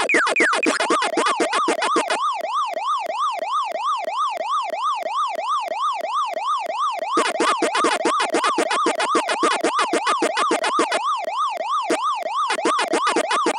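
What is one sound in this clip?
Quick electronic blips chomp in a fast rhythm.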